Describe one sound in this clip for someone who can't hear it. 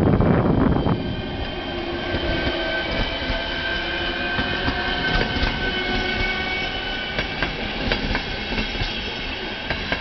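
Train wheels squeal with a high steady whine.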